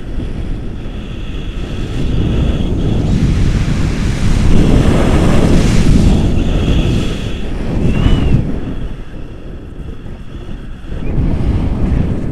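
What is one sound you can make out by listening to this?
A man speaks close by, raising his voice over the wind.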